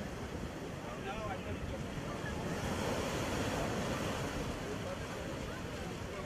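Waves crash and roar on the shore.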